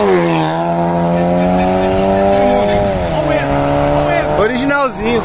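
A car engine roars loudly as a car speeds past and its pitch drops.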